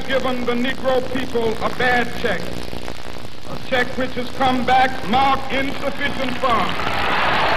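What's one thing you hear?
A man speaks forcefully into microphones, heard through loudspeakers.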